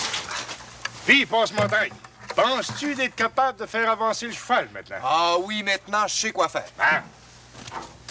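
A man talks with animation nearby, outdoors.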